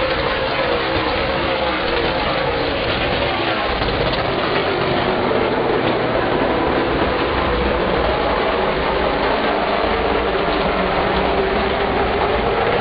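Race car engines roar loudly as the cars speed around the track.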